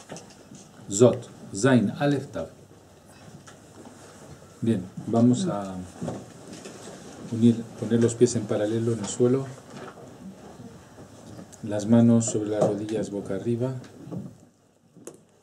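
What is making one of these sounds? A middle-aged man speaks calmly and clearly, close to a microphone, in short phrases with pauses.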